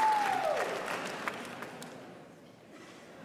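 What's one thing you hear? A band's final chord rings out and fades in a large hall.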